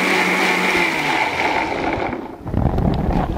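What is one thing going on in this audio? A blender whirs loudly, then winds down.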